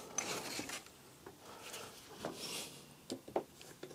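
A stiff card rustles and taps as it is placed over paper.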